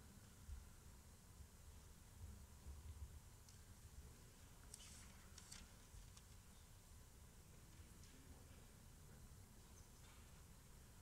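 A man murmurs a prayer quietly into a microphone.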